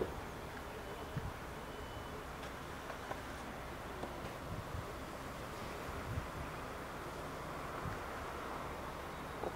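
A train rumbles faintly as it slowly approaches from a distance.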